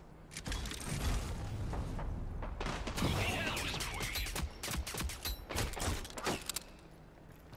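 Pistol shots fire in quick bursts.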